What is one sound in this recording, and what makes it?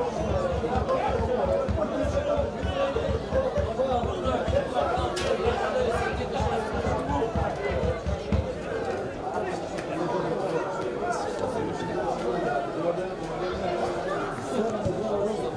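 A crowd of spectators chatters outdoors at a distance.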